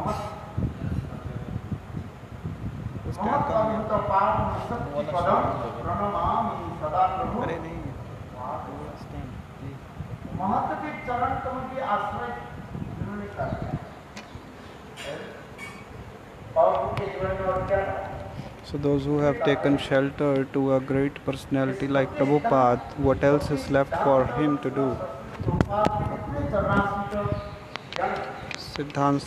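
An elderly man speaks steadily into a microphone, heard through a loudspeaker in a room.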